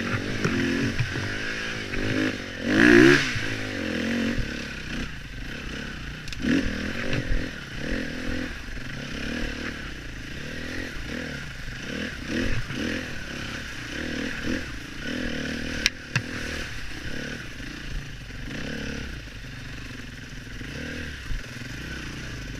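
Another dirt bike engine drones further ahead.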